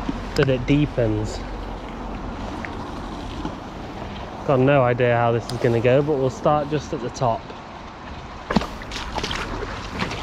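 A fishing reel clicks as its line is wound in.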